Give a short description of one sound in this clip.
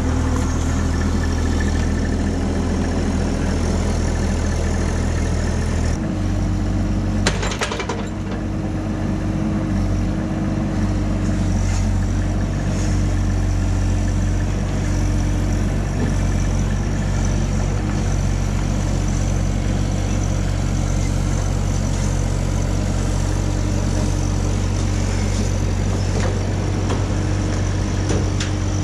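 A small diesel engine rumbles steadily close by.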